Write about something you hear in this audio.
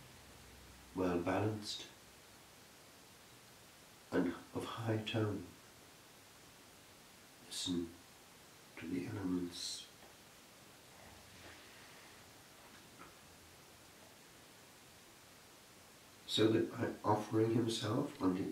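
An elderly man speaks slowly and solemnly, with long pauses between phrases.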